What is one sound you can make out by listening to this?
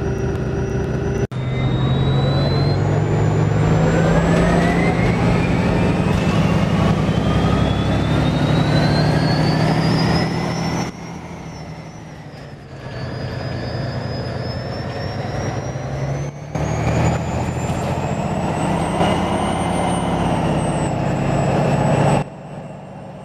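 A bus engine hums and whines as it speeds up.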